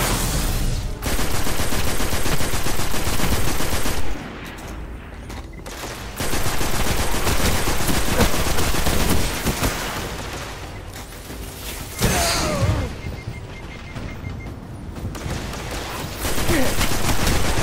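Rapid automatic gunfire rattles in bursts.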